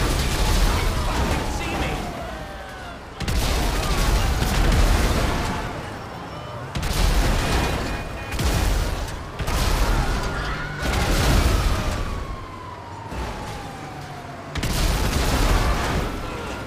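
Cars crash into a bus with heavy metal thuds.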